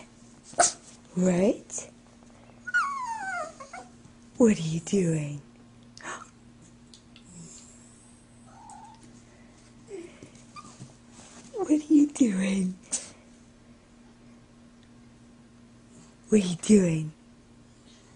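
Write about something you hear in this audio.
A small dog yips and barks in short, high bursts.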